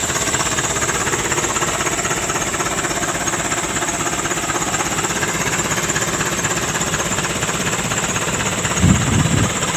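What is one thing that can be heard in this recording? Tyres spin and churn through thick mud.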